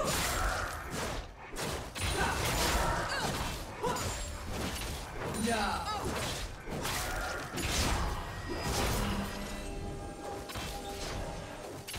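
Fantasy battle sound effects whoosh, clash and crackle in quick bursts.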